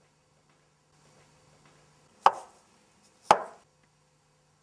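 Wooden blocks knock and clack against each other.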